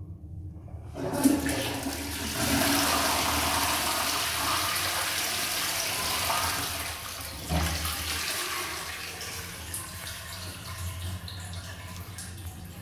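A toilet flushes with loud rushing water that gradually fades.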